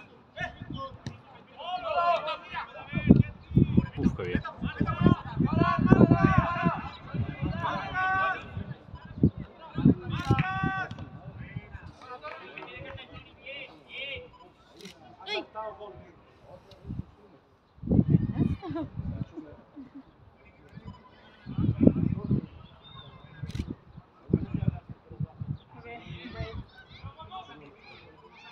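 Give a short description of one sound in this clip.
Young players shout and call out across an open sports field.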